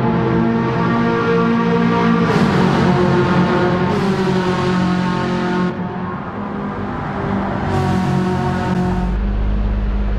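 A race car engine roars at high revs, rising and falling as it shifts gears.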